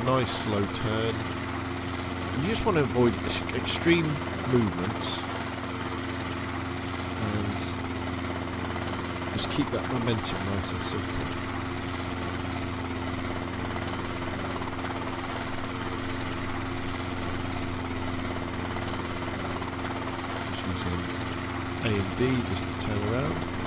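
A small helicopter's engine drones steadily as it flies.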